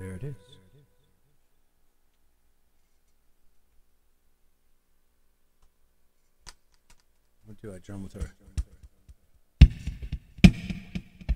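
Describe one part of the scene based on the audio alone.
An electric guitar is plucked and strummed in short bursts with pauses between them.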